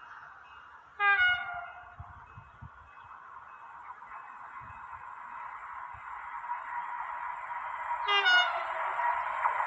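A train horn blows twice in the distance.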